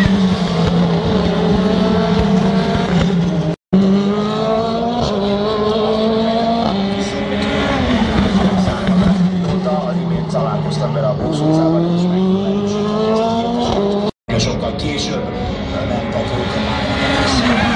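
Racing car engines whine loudly, rising and falling in pitch as cars speed past.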